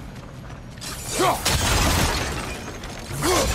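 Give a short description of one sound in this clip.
A wooden structure collapses with a loud crash.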